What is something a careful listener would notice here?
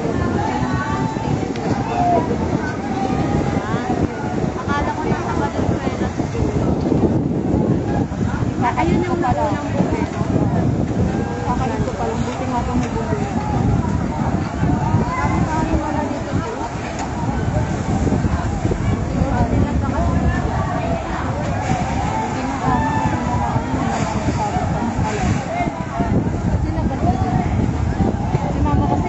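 A crowd of men and women shout and talk outdoors.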